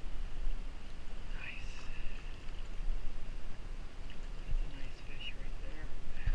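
Water splashes as a fish thrashes in a landing net.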